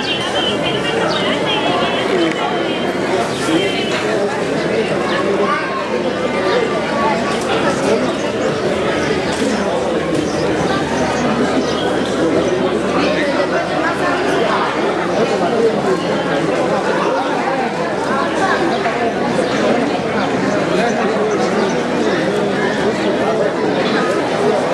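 A large crowd of men, women and children chatters in a wide, echoing space.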